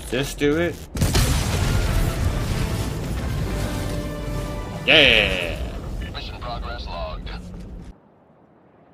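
A huge explosion booms and rumbles.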